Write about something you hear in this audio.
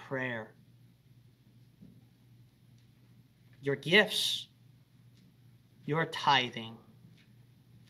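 A young man speaks slowly and calmly into a microphone, in short phrases with pauses.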